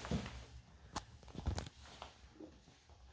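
Small plastic bottles knock against each other on a sink.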